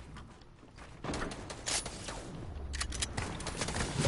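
Video game building sounds clatter rapidly.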